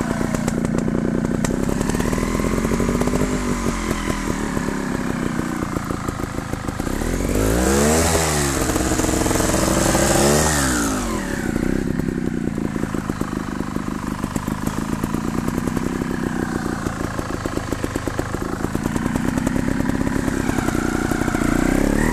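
A motorcycle engine putters and revs throughout.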